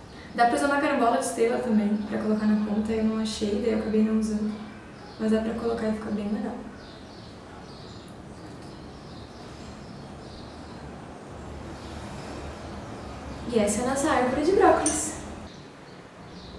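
A young woman talks brightly close by.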